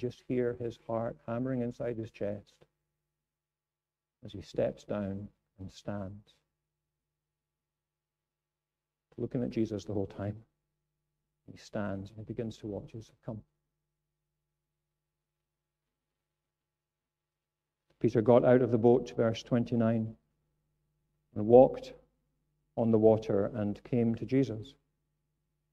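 A middle-aged man speaks with animation into a microphone, pausing often.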